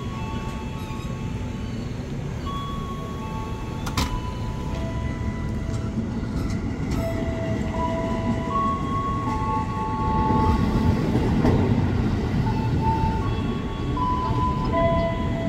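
An electric train rumbles and clatters as it pulls away and passes by.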